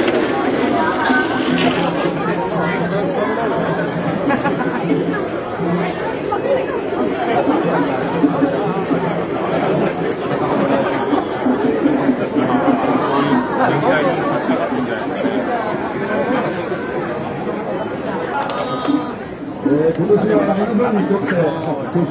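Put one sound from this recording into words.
A large crowd of men and women chatters loudly all around, outdoors.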